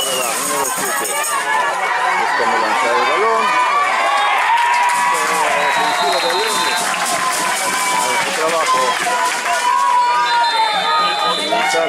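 A man nearby shouts encouragement loudly.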